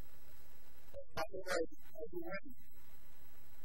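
A man speaks briefly through a microphone in a large hall.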